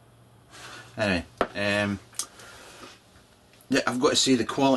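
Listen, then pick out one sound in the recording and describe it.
A middle-aged man talks close by, calmly and conversationally.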